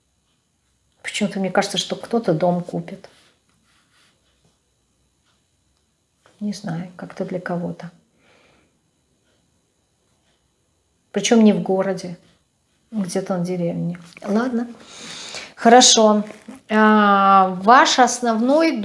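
A middle-aged woman speaks calmly and close to a microphone, with pauses between phrases.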